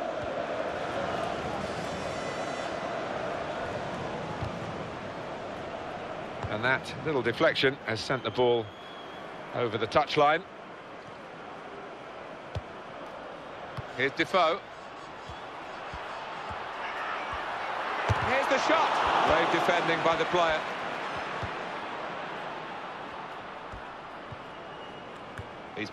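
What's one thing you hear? A stadium crowd roars steadily, swelling to a loud cheer.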